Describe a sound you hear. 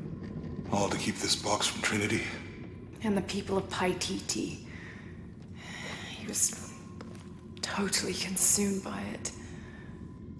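A young woman speaks in a low, tense voice close by.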